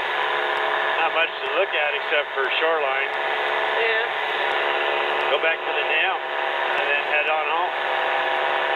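A man speaks over a crackly intercom.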